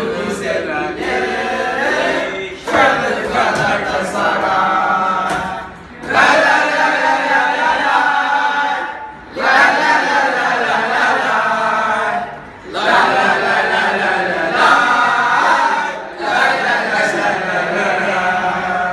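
A group of teenage boys sing loudly together close by, in phrases with short pauses.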